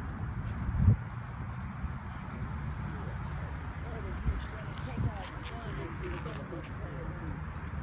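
Small puppies yip and whine close by.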